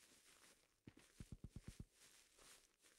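A short burst of rapid gunfire rattles.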